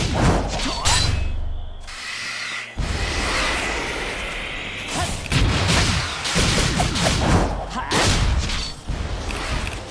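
Game robots are struck with sharp metallic hits.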